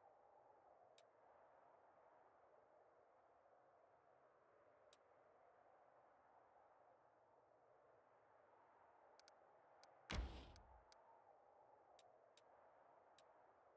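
Soft clicks of a game interface sound now and then.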